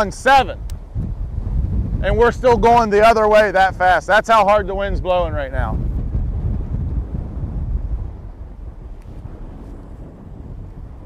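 Wind blows against the microphone with a low rumble.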